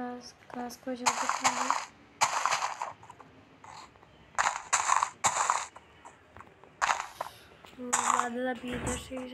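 Grass blocks crunch as they are broken in a video game.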